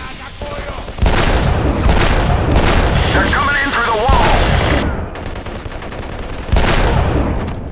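A pistol fires single loud shots that echo.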